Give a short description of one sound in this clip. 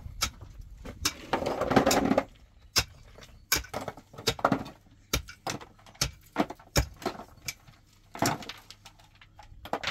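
Stones clatter and knock as they are dropped into a basin.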